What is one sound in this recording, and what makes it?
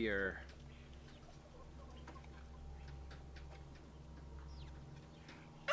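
Hens cluck and chirp softly nearby.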